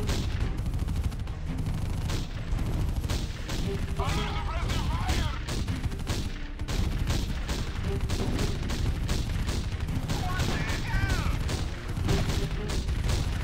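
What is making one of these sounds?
Explosions boom as shells hit.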